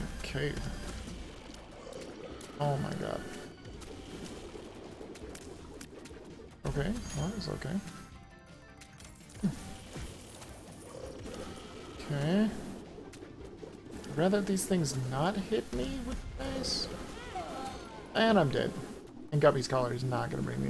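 Small shots pop and splat in a video game.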